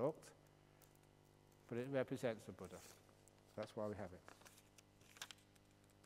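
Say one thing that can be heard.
A middle-aged man speaks calmly in short phrases, heard through a microphone in a room.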